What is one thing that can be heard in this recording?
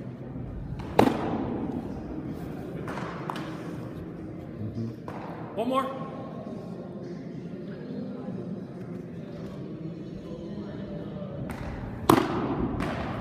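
A baseball smacks loudly into a catcher's mitt, echoing in a large hall.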